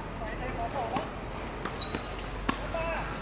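A tennis racket strikes a ball outdoors.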